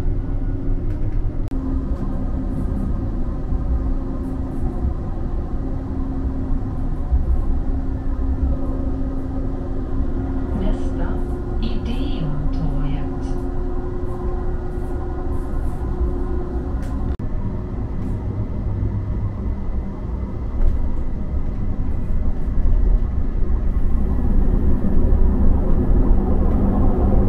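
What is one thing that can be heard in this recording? Tram wheels rattle and clack on the rails.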